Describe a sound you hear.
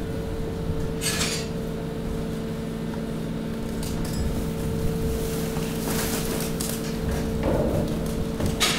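Plastic and cardboard rustle and crinkle as trash shifts in a pile.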